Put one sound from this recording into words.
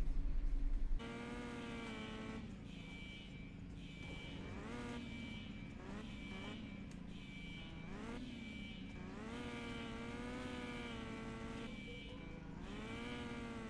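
A racing car engine whines, rising and falling in pitch.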